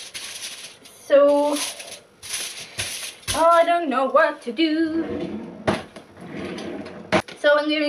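Objects clatter on a stovetop.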